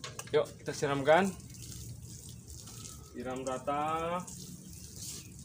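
Water pours from a watering can and patters onto soil.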